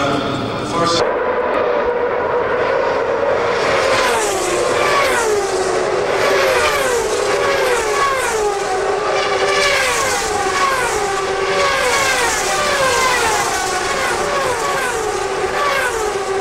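Racing cars roar past one after another with a high engine whine that falls as each passes.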